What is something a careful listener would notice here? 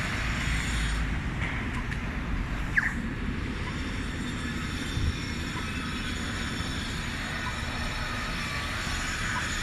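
City traffic rumbles steadily in the distance outdoors.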